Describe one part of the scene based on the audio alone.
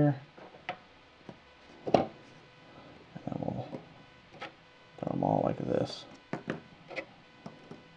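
Small plastic figures tap and scrape on a tabletop.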